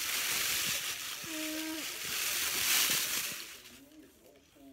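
Foil crinkles and rustles loudly up close.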